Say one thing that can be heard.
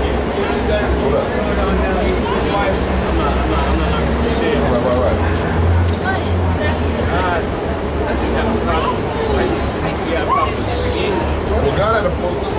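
A man talks on a phone nearby.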